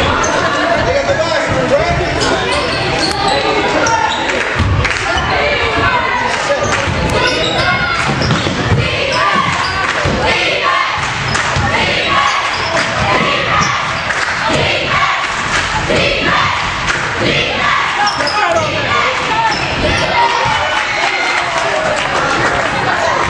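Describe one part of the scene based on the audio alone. Basketballs bounce on a wooden floor in an echoing gym.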